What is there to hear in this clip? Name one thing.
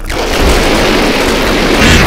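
A video game flamethrower roars in bursts.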